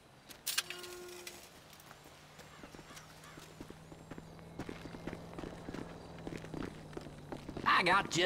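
Footsteps crunch on gravel and thud on wooden steps.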